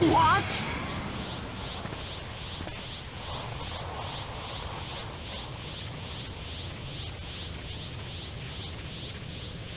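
Fire roars steadily.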